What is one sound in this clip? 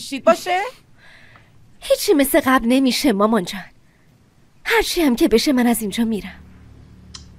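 A young woman speaks calmly and earnestly nearby.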